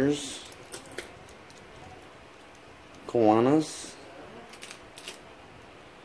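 Plastic pens click and clatter softly as a hand picks them up.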